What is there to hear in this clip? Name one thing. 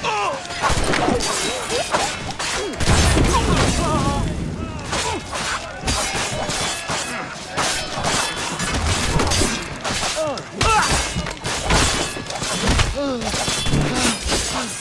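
Swords clash and clang repeatedly in a fight.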